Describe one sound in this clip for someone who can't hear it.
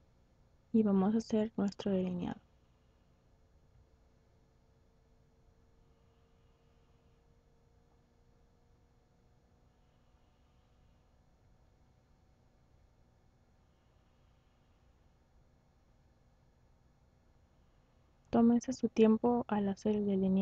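A young woman speaks calmly and close to a microphone.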